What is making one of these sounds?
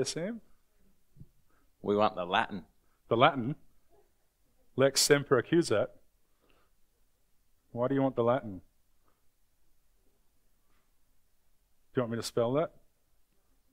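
A man speaks calmly in short phrases with pauses.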